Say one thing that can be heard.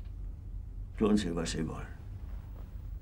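A man mutters quietly.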